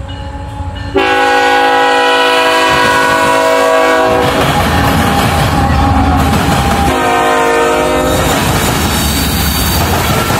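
A diesel locomotive rumbles past close by.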